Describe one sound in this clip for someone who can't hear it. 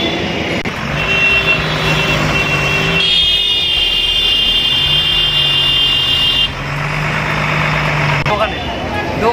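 A truck horn blares in long steady blasts.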